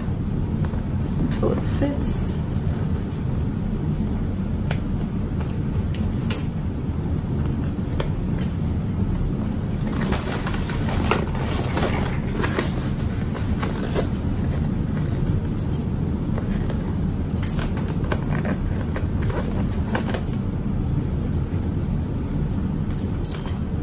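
Hands rustle and tap against a sewing machine.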